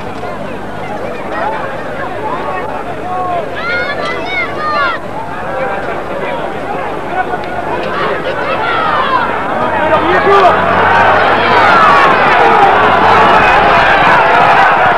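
A large crowd talks and shouts outdoors, growing louder and more excited.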